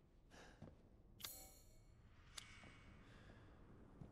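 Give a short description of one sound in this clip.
A metal gate lock rattles.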